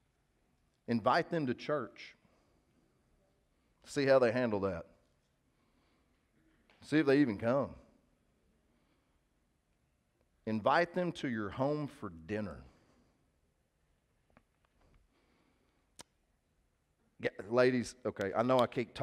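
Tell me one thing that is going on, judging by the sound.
A man speaks emphatically through a headset microphone, in short bursts with pauses.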